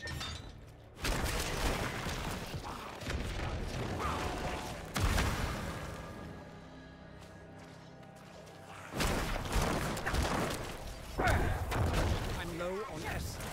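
Weapons clash and bones crack in loud bursts of fighting.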